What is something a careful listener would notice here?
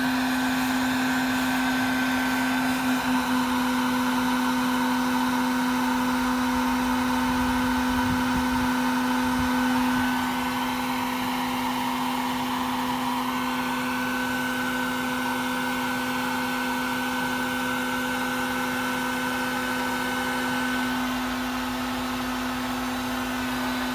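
A large swarm of bees hums steadily and loudly.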